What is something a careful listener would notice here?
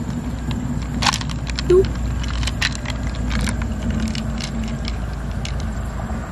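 Pearls clatter against each other as they are pushed out of a shell.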